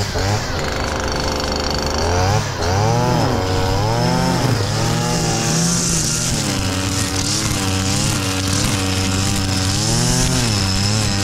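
A string trimmer engine whines close by, revving up and down.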